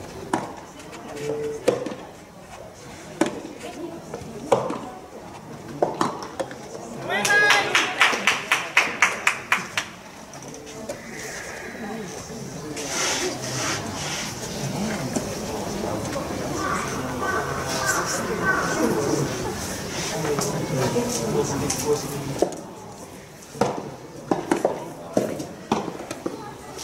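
Tennis balls are struck with rackets in a rally, with sharp pops back and forth.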